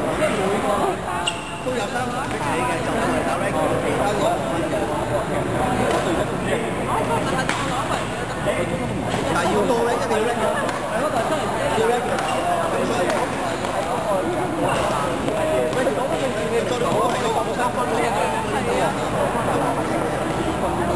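Shuttlecocks are hit with rackets, with sharp pops, in a large echoing hall.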